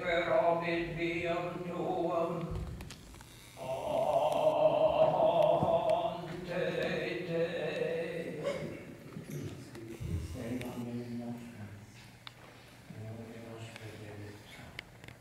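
A man sings a slow chant in a large echoing hall.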